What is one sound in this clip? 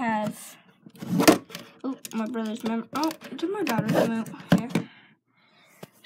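Hands handle a small plastic game console with light knocks and rustles.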